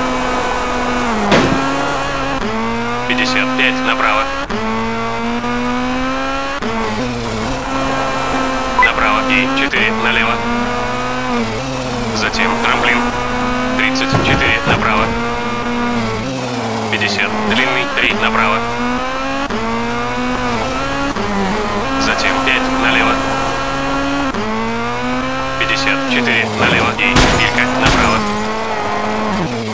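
A rally car engine revs high and drops as gears shift.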